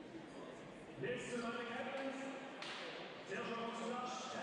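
Players shout and call to each other in a large echoing hall.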